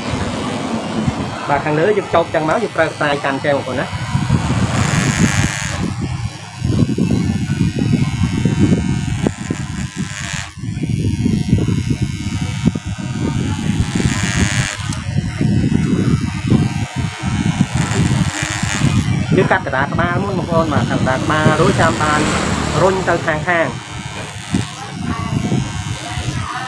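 Electric hair clippers buzz in short bursts close by.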